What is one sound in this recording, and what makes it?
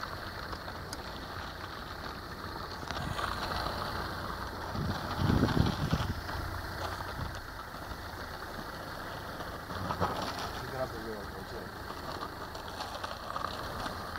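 A car engine hums at low speed close by.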